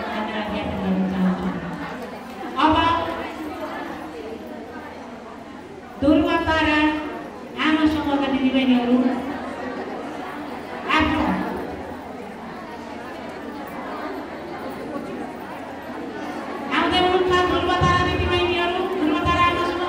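A middle-aged woman speaks through a microphone and loudspeaker in an echoing room.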